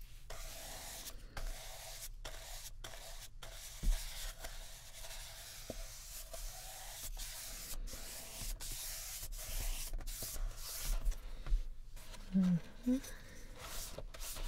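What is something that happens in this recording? A brush scrubs and swishes across paper.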